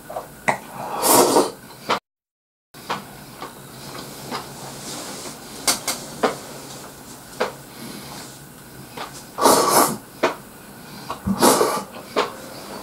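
A man slurps noodles loudly, close by.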